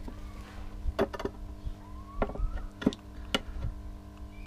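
Metal clamps click and clack against wood.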